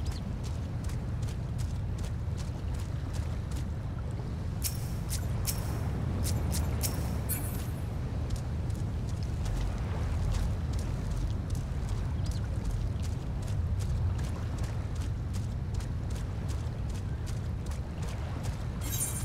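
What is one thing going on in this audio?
A large bird's feet patter quickly and steadily over sand.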